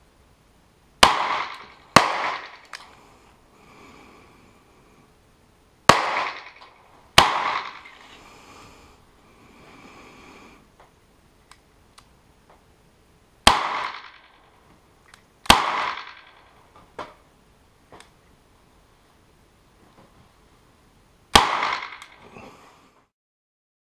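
A handgun fires single loud shots that echo across open ground.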